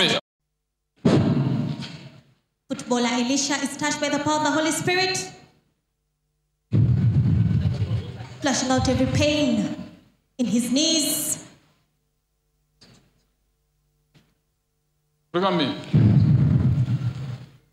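A man speaks loudly and with animation into a microphone, heard through loudspeakers in a large echoing hall.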